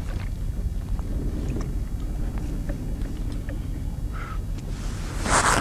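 Small objects click and knock on a plastic kayak.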